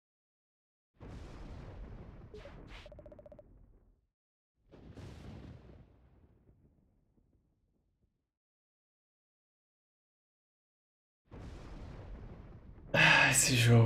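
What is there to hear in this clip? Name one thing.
Thunder rumbles and crashes.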